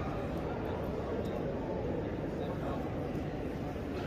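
A crowd of people murmurs softly in a large echoing hall.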